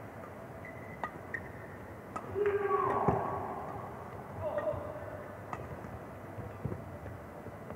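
A shuttlecock is struck sharply back and forth by rackets.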